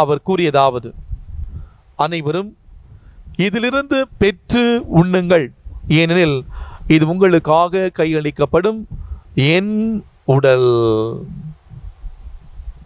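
A man chants through a microphone.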